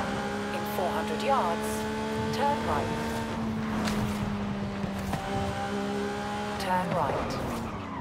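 A supercar engine roars at high speed, shifting gears.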